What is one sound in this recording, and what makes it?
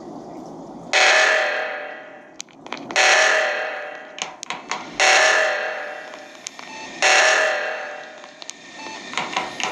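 An alarm blares in loud repeated bursts.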